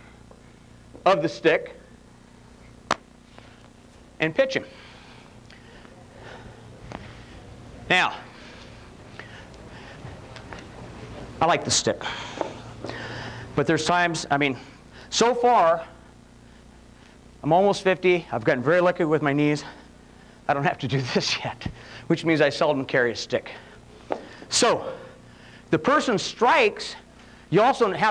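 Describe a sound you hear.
A man speaks calmly through a clip-on microphone.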